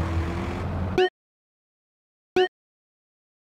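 A menu blips with short electronic tones.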